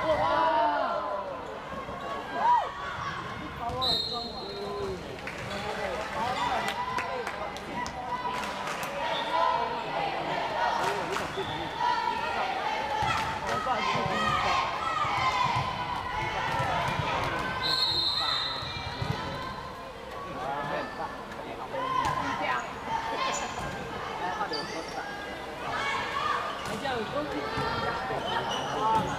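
A volleyball is struck with hands, thudding sharply.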